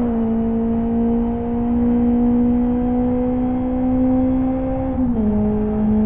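A car engine hums loudly at high revs, slowly rising in pitch.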